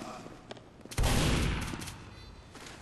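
A shotgun fires a single blast.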